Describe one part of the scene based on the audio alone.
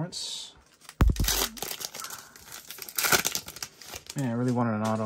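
A foil wrapper crinkles.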